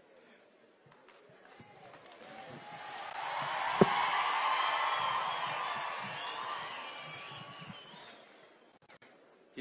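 A crowd cheers and applauds, swelling and then fading away.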